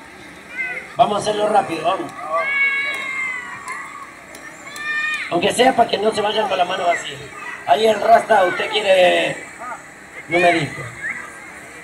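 Children talk and shout excitedly close by, outdoors.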